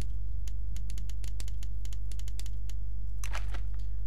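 A game plays short soft clicks as letters are typed.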